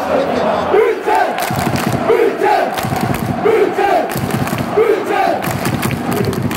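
A large crowd chants in rhythm in a big echoing arena.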